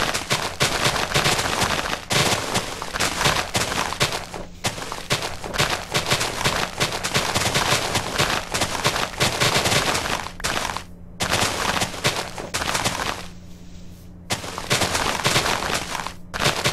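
Tall grass rustles and snaps as it is broken in a video game.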